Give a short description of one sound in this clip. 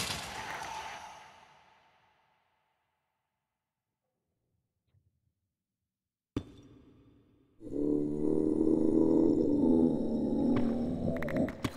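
Stone blocks crunch and crack as they are broken.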